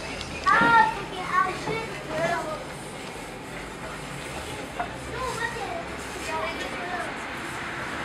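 A young woman talks.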